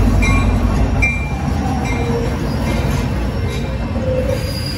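Freight cars rumble past.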